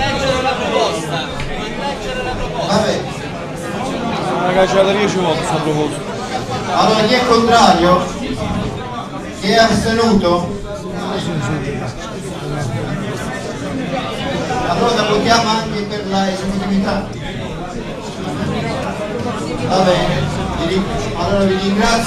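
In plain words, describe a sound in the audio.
A crowd of men talk and shout over one another in a crowded, echoing room.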